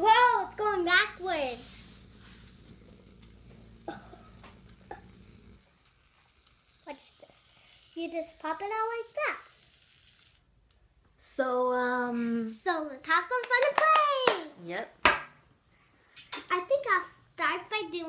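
Plastic toys tap on a table.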